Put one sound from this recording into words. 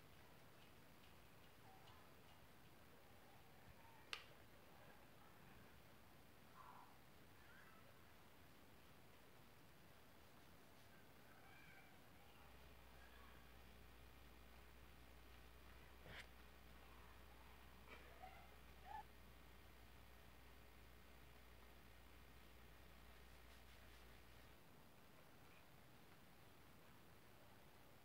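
A paintbrush softly brushes against a wall.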